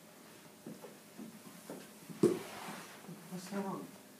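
A plastic chair scrapes and knocks.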